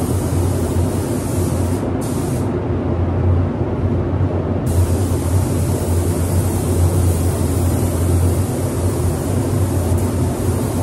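A spray gun hisses loudly in long bursts.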